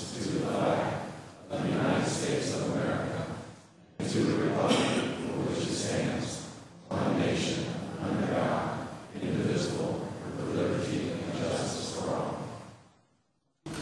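A crowd of men and women recites a pledge together in unison.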